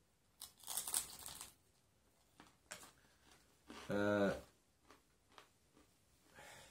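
Playing cards rustle and riffle as hands shuffle them.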